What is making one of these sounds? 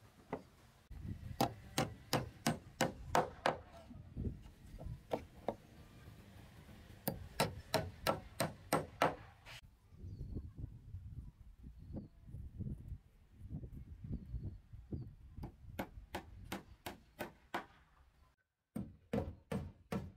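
A hammer drives nails into wooden floorboards.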